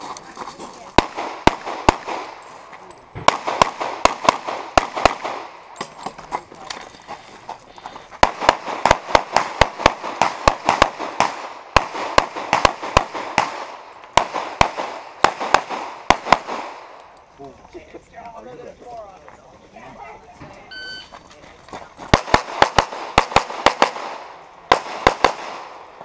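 Pistol shots crack in rapid bursts outdoors.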